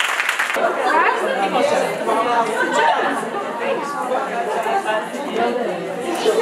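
A crowd of women chatters all around.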